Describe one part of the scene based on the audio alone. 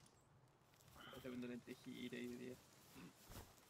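A middle-aged man speaks briefly into a close microphone.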